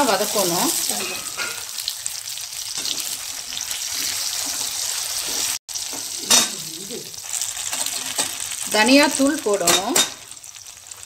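Food sizzles in hot oil in a pan.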